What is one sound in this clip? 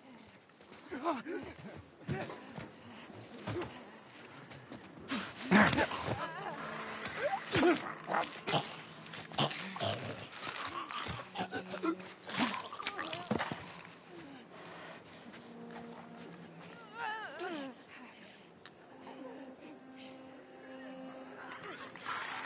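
Footsteps rustle softly through tall grass.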